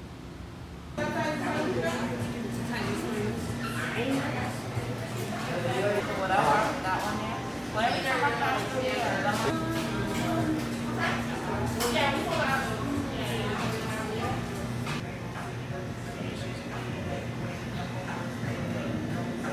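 A crowd of men and women chatter indistinctly in a busy indoor room.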